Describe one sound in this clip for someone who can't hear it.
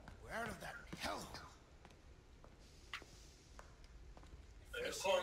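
Footsteps tread slowly on a hard, wet floor.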